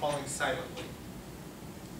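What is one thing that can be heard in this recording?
A man speaks briefly through a microphone.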